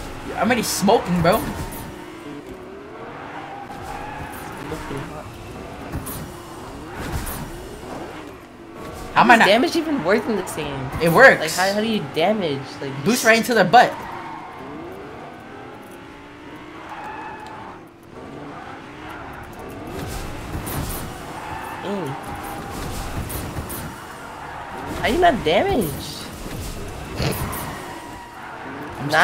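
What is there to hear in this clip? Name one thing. A car engine roars and revs as it races along.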